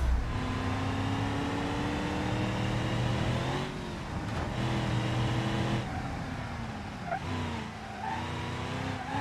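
A car engine hums and revs, its pitch rising and falling with speed.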